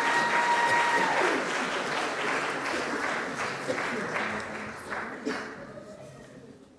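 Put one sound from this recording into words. A band with saxophones and strings plays and then fades out.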